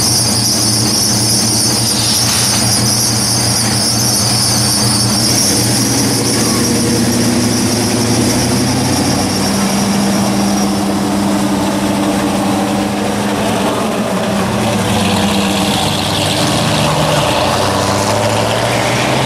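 Old car engines rumble loudly as cars pull away one after another.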